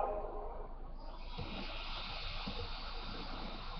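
Video game music plays steadily from a television speaker.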